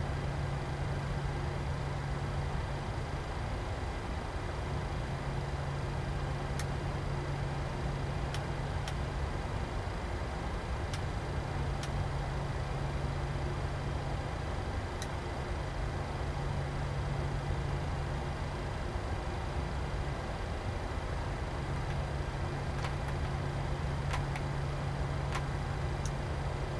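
A steady low engine hum fills a cockpit.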